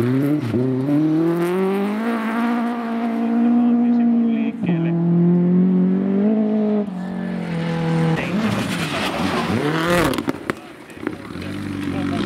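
Gravel sprays and rattles under spinning tyres.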